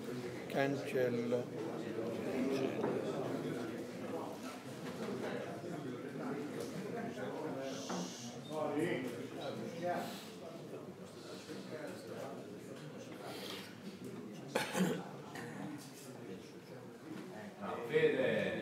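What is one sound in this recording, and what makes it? Men talk nearby in a room with a slight echo.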